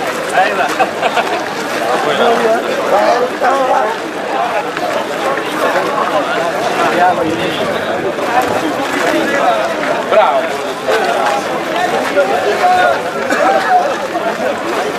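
A crowd of men chatter loudly all around, outdoors.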